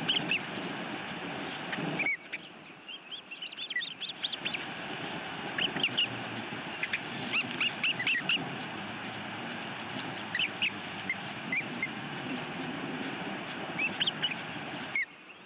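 Young birds chirp in high, repeated peeps.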